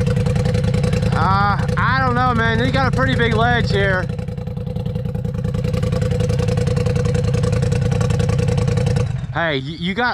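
An off-road vehicle's engine rumbles and revs.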